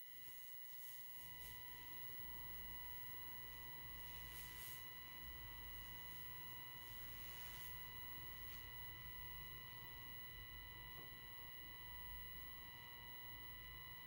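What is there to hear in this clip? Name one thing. A monitor gives off a steady electronic hum and whine.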